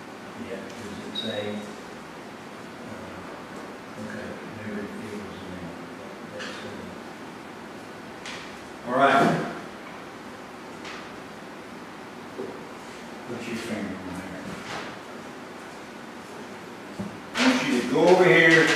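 A man speaks calmly in a room, a little way off.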